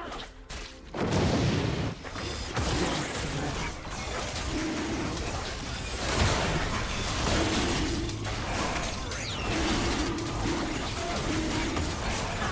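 Magical spell effects whoosh and crackle in a fight.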